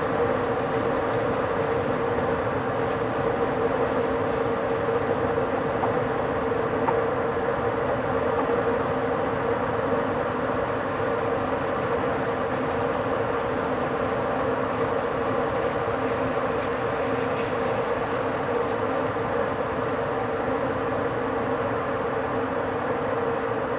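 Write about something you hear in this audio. A train rolls steadily along the rails with a constant rumble and hum.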